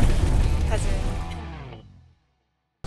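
A young woman speaks cheerfully and laughs close by.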